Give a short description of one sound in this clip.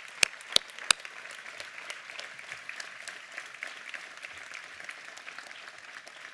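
A crowd applauds steadily outdoors.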